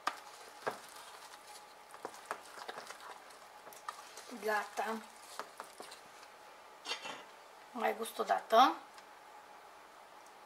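A spoon scrapes and clinks against a bowl while stirring.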